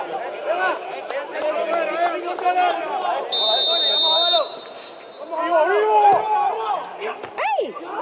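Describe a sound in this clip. Young men shout and call out to each other across an outdoor sports field.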